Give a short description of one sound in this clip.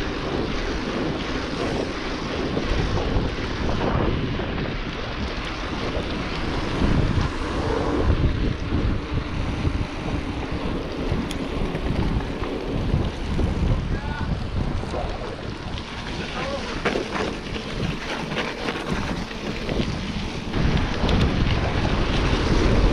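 Wind rushes loudly over the microphone while riding outdoors.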